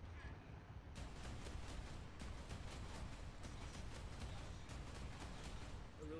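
Artillery shells explode with loud booms.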